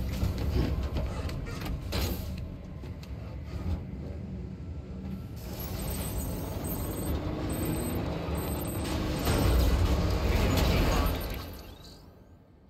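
A vehicle engine rumbles and drives off.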